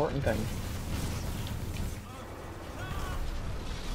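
Heavy gunfire blasts rapidly.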